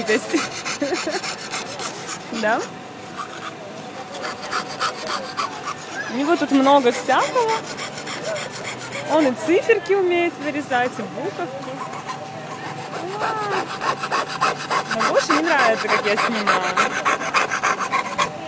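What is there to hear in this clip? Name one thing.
A hacksaw cuts through thin metal with quick back-and-forth strokes.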